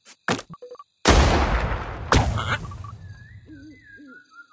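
A cartoon bomb explodes with a deep boom.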